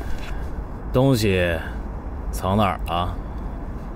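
A young man speaks sharply and tensely, close by.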